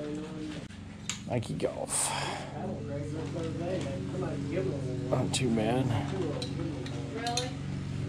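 Clothes hangers rattle on a drying rack.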